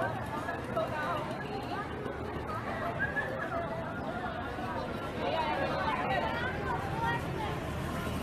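A crowd of men and women talk and shout close by outdoors.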